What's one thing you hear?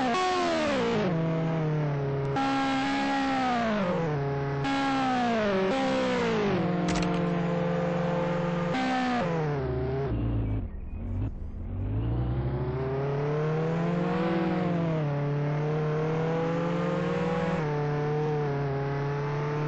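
A sports car engine revs through gear changes.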